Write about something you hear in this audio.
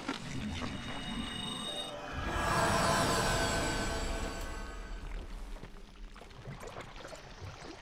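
Armoured footsteps crunch on the ground.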